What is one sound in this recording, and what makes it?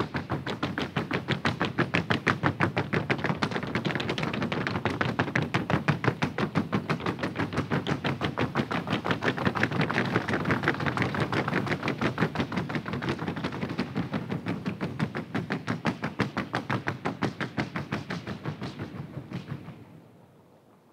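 Horse hooves drum rapidly and evenly on a hollow wooden board in a large echoing hall.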